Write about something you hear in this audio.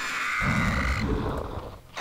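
Creatures snarl and strike in a clashing battle.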